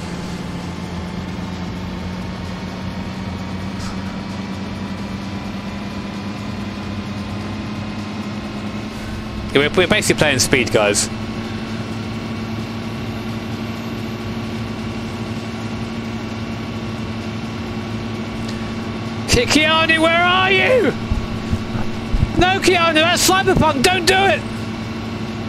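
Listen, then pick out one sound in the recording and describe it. A bus engine hums steadily as it drives.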